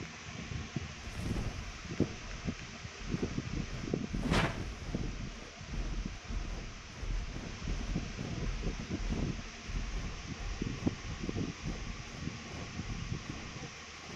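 Large wings flap with deep, steady whooshes.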